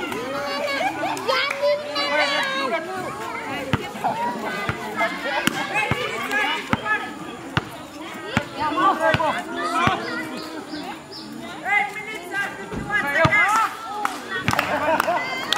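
A basketball bounces on concrete with sharp thuds.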